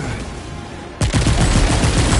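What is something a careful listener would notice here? A heavy blast booms suddenly.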